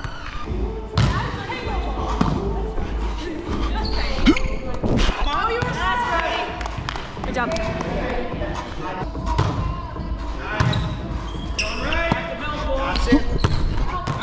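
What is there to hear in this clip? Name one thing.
A volleyball thumps off players' hands and arms.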